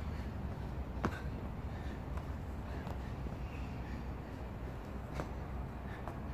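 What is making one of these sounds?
Hands and feet thump onto rubber flooring during burpees.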